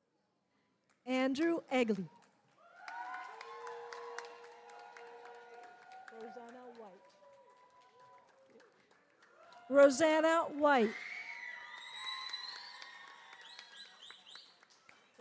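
A crowd cheers and whoops loudly in a large echoing hall.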